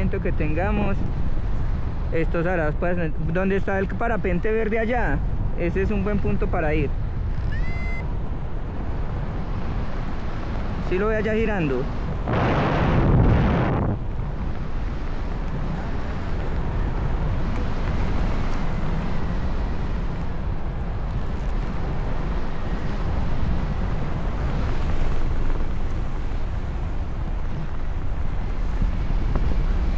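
Wind rushes steadily past, loud and close.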